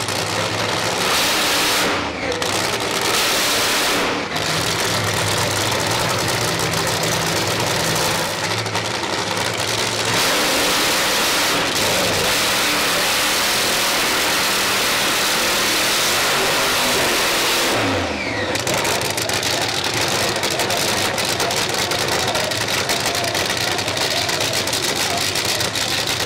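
Tyres squeal and screech as they spin on the track.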